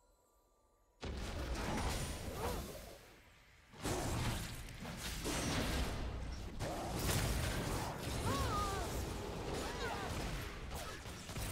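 Fiery spell blasts whoosh and crackle in a fight.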